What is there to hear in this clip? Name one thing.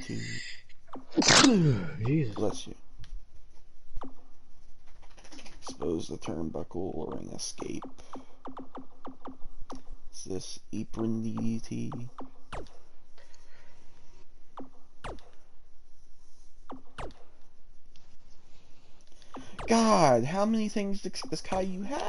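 Short electronic ticks sound as a menu selection moves.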